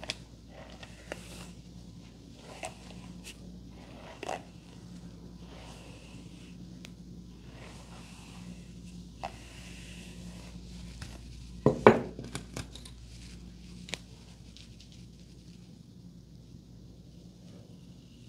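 A comb scratches through hair.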